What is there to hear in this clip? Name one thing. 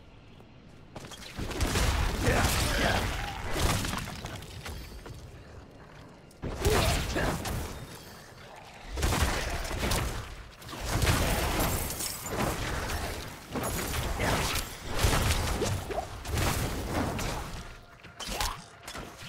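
Game combat sounds clash and thud with bursts of impacts.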